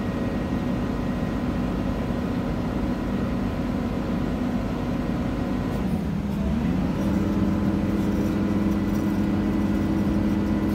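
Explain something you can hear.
A diesel engine rumbles steadily and revs up partway through.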